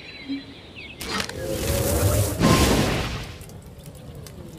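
A bow charges up with a rising whoosh.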